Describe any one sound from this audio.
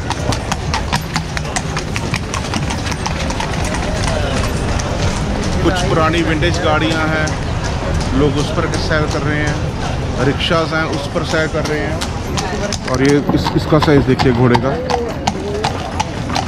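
A horse's hooves clop on cobblestones.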